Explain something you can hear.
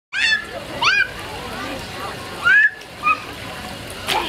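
A toddler squeals in high-pitched bursts close by.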